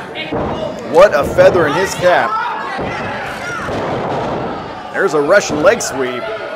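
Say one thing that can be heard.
Bodies thud heavily onto a ring mat.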